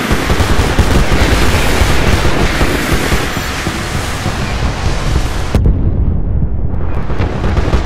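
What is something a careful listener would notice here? Missiles explode nearby with heavy booms.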